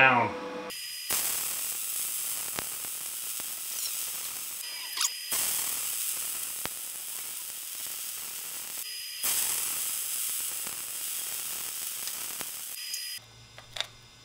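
A welding torch hisses and crackles steadily.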